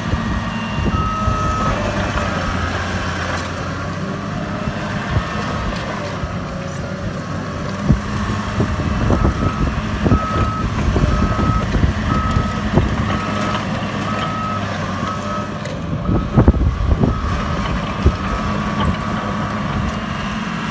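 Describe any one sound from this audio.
A bulldozer's backup alarm beeps repeatedly.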